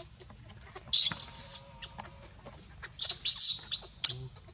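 A baby monkey squeals shrilly.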